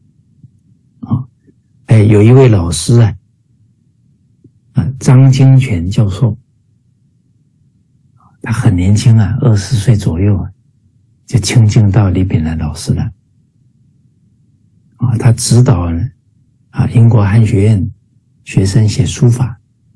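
A middle-aged man speaks calmly and warmly over an online call, in short phrases with pauses.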